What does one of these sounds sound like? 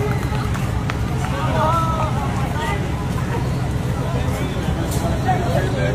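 A crowd of young people chatters and calls out nearby, outdoors.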